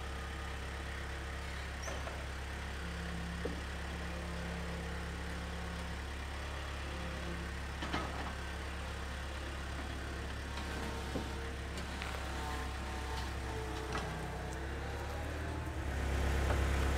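A diesel engine idles with a steady low rumble nearby.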